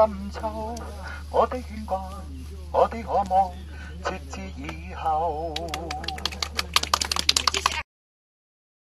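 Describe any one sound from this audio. A young man sings loudly through a megaphone, with a wavering voice.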